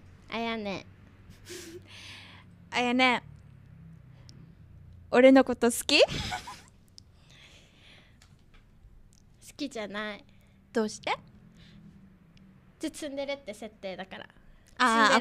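A young woman talks lightly and cheerfully into a close microphone.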